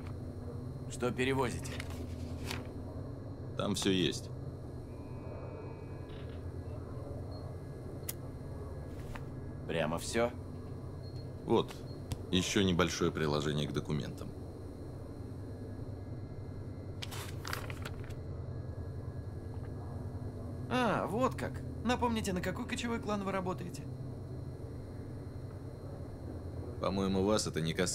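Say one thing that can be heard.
A man speaks calmly nearby, in short phrases with pauses.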